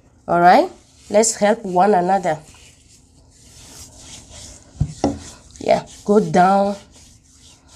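Gritty scrub rasps softly as hands rub it over skin.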